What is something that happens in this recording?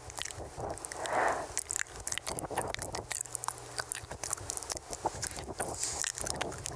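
Wet mouth clicks and smacks pop close to a microphone.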